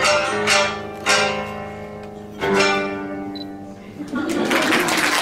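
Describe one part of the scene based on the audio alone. Plucked shamisen and koto strings play ringing notes, then stop.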